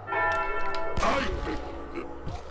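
A gunshot rings out.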